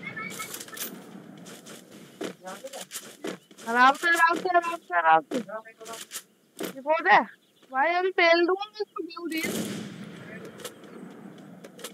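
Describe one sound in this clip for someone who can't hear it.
Footsteps run quickly over grass and pavement.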